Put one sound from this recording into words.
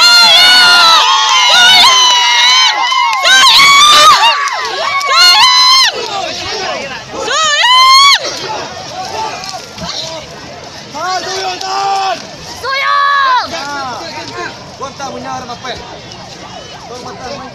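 A crowd cheers and shouts loudly nearby, outdoors.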